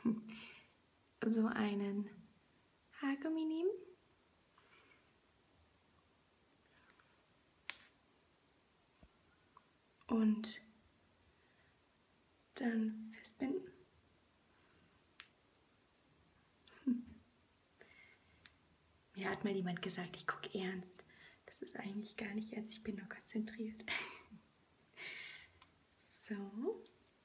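A woman talks with animation close to the microphone, with pauses.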